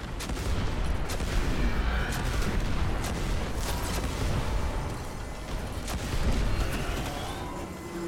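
Explosions boom and roar in quick succession.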